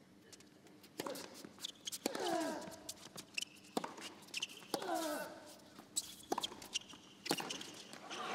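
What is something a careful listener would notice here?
Tennis balls are struck hard with rackets in a rally.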